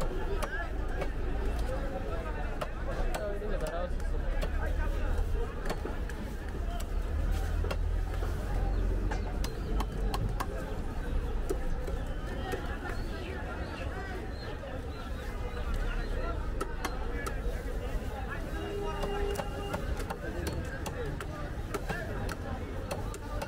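Fish is chopped with a heavy blade in sharp, repeated thuds.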